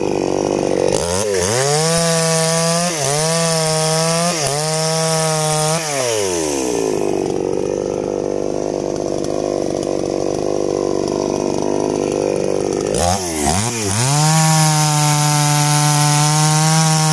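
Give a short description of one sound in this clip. A chainsaw revs up loudly.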